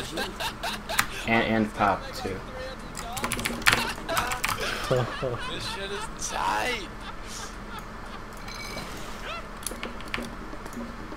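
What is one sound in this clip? Short clicks and battle sound effects from a video game play.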